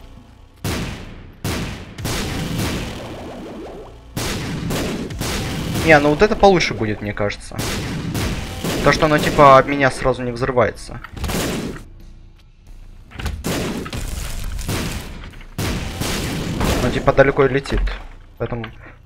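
Video game sound effects pop and blast.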